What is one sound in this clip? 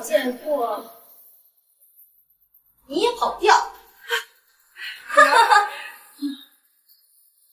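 A young woman speaks sharply, close by.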